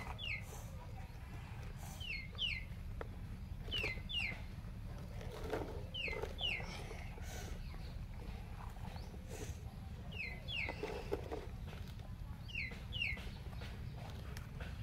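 A toy excavator scoops and scrapes loose soil.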